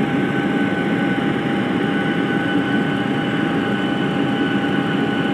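Jet engines roar steadily with a constant whine.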